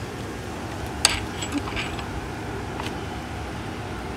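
A metal gate latch clicks and rattles.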